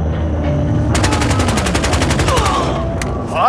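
A rifle fires a rapid burst close by.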